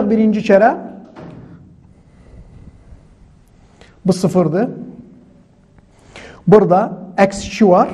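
A man speaks calmly and clearly, close by, in short phrases with pauses.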